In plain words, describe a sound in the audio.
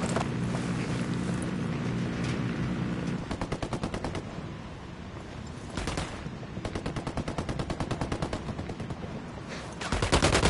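Footsteps run quickly over dry dirt.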